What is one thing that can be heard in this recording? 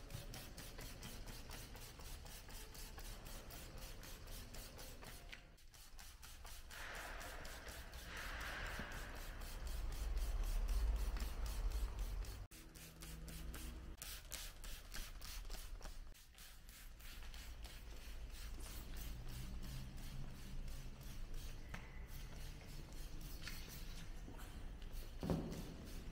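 A spray bottle hisses in short bursts.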